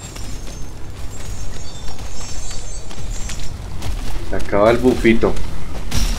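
Footsteps crunch through undergrowth.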